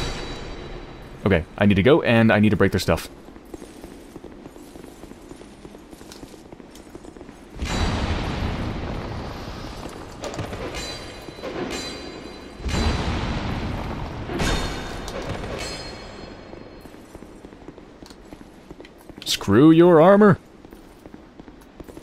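Armoured footsteps clatter on a stone floor.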